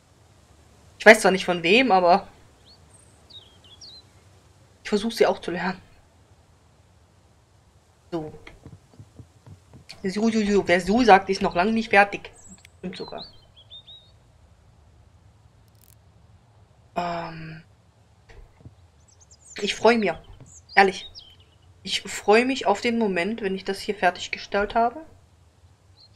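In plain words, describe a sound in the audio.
A woman talks calmly and casually into a close microphone, in short bursts with pauses.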